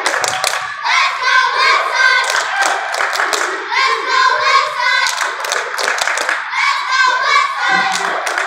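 Young girls clap their hands in rhythm.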